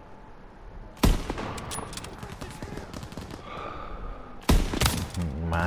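A sniper rifle fires two loud, sharp shots that echo briefly.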